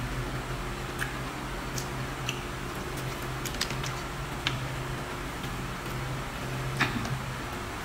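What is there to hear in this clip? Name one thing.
An elderly woman chews and smacks on soft fruit close by.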